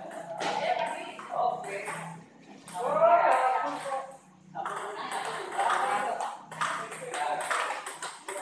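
Table tennis balls click against paddles and tables.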